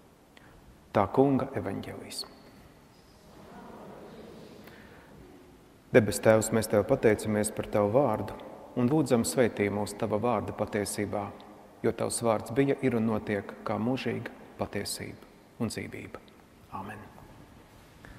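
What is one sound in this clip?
A man speaks calmly into a lapel microphone in a large echoing room.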